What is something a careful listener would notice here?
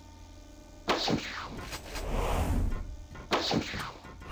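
An explosion booms and hisses.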